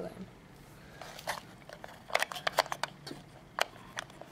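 Small plastic bricks click and clatter as fingers handle them.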